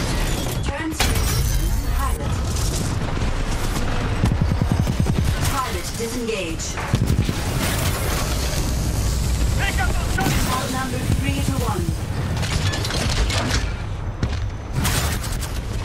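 Explosions boom heavily.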